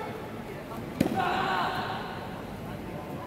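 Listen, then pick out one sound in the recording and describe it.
A man gives a loud, drawn-out shout in an echoing hall.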